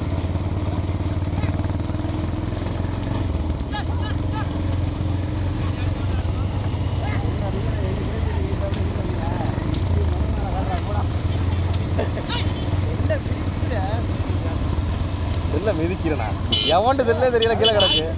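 Cart wheels rattle on the road.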